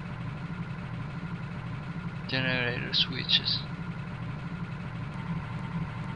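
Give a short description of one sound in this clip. A low machine hum drones steadily.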